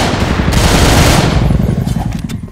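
A machine gun fires a rapid, loud burst.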